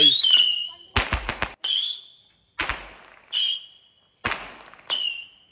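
Fireworks pop and bang loudly in the open air.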